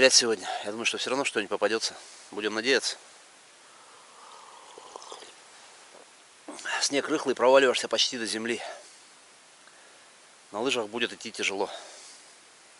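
An elderly man speaks calmly close by, in pauses.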